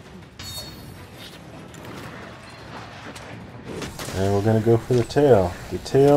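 A sword clangs against a large beast's hide.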